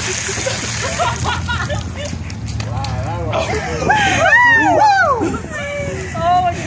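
A group of adults laughs and cheers.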